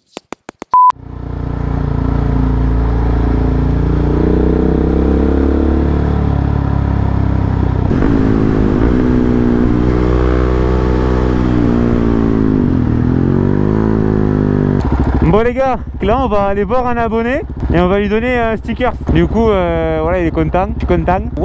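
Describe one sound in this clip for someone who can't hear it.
A motorcycle engine runs close by, revving up and down as it rides.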